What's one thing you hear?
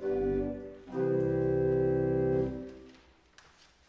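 An organ plays a sustained chord, then stops.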